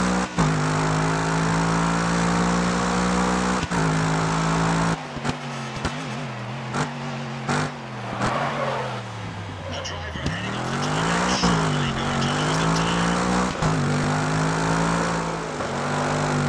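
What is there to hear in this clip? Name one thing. A racing car engine roars at high revs, dropping in pitch as the car slows for a corner and rising again as it speeds up.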